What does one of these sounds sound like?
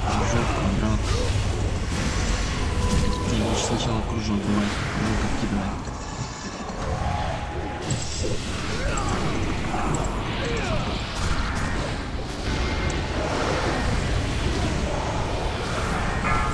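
Weapons clash in a busy fight.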